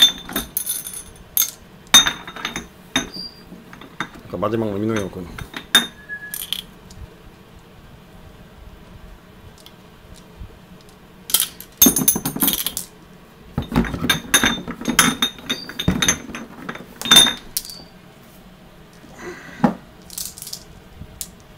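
Glass marbles click and clack against each other in a hand.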